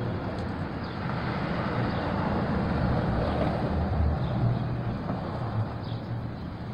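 A sports car's engine revs up loudly and settles back.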